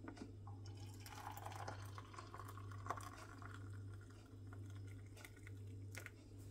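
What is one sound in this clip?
Liquid pours softly into a glass mug.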